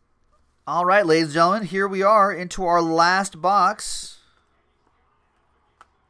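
Trading cards shuffle and rustle in hands.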